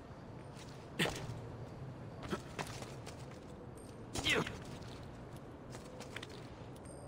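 Hands grip and scrape on stone.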